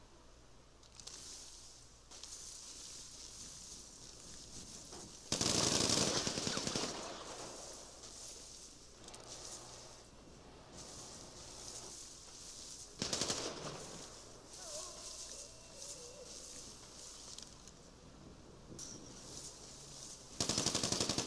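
Leaves and branches rustle as someone pushes through dense bushes.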